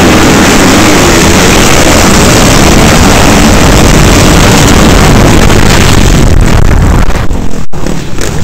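Many dirt bike engines roar loudly close by.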